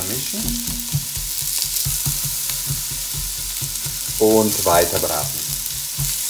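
A spatula scrapes and stirs in a pot.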